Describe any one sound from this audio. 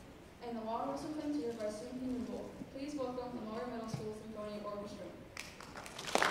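A woman speaks calmly through a microphone in an echoing hall.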